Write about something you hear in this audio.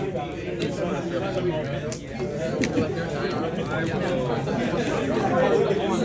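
Playing cards are shuffled by hand.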